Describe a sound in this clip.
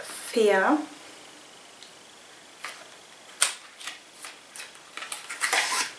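A young woman speaks briefly and calmly, close to the microphone.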